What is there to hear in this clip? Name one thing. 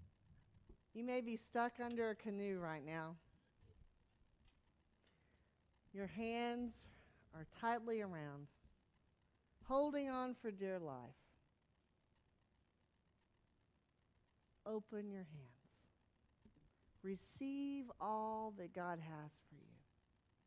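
A woman speaks with feeling through a microphone, in short phrases.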